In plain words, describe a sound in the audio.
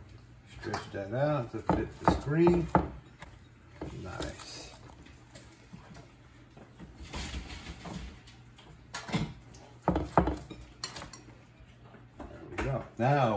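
Hands pat and stretch soft dough on a pan.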